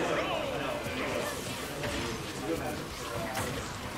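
Fighting game sound effects whoosh and thud.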